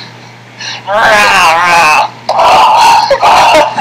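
A boy shouts loudly, heard through a small tinny speaker.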